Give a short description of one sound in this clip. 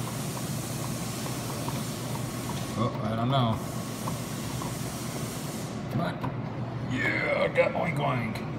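An arcade claw machine hums steadily.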